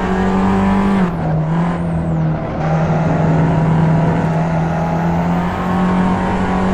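A small petrol hatchback engine drones under load at high revs.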